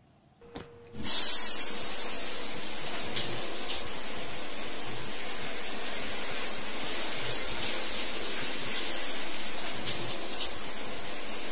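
Water sprays steadily from a shower.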